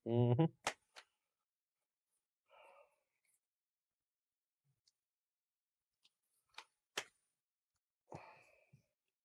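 Playing cards click and tap against a table.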